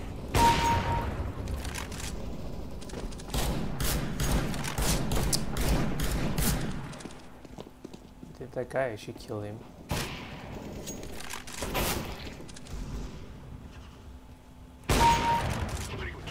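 Gunshots crack loudly in a video game.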